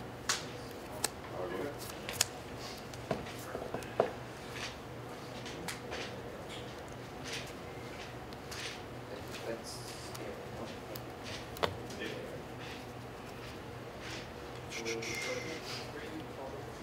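Playing cards shuffle and riffle in hands.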